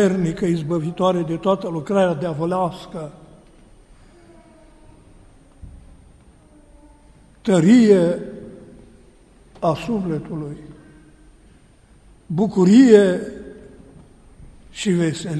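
A man chants a prayer in a melodic voice, in an echoing hall.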